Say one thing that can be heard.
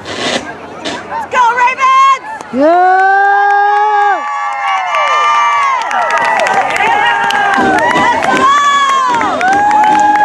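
A crowd cheers loudly as a team runs onto the field.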